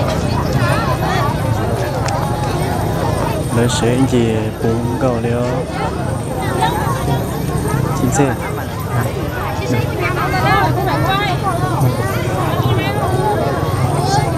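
A large crowd of men, women and children chatters outdoors all around.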